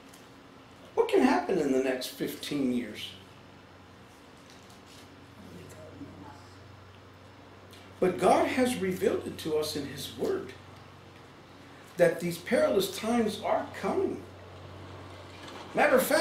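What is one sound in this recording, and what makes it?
An older man speaks calmly and deliberately, with pauses.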